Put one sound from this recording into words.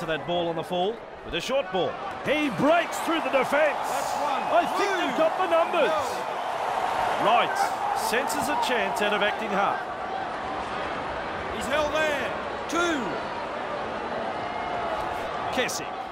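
A stadium crowd cheers and roars steadily.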